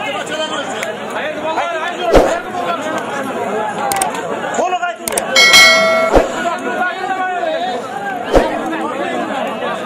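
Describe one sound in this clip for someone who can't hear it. A large crowd of men chatters and calls out outdoors.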